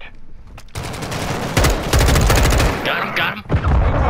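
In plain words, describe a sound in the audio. An assault rifle fires.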